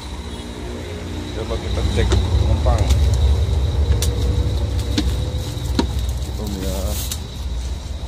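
Footsteps thump on metal steps.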